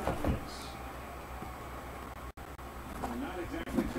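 Plastic cases clatter as they are stacked.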